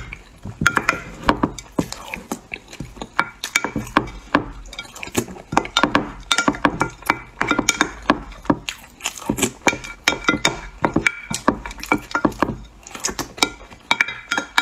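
A young woman chews and slurps loudly close to a microphone.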